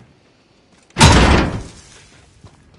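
A gunshot booms loudly once.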